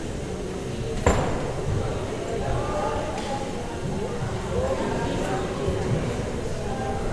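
A crowd of people talk and murmur in a room with some echo.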